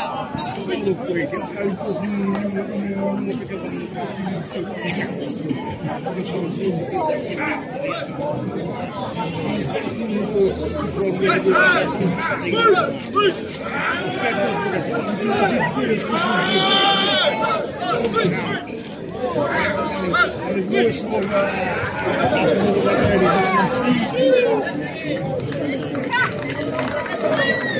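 A crowd of men, women and children chatters and calls out all around, outdoors.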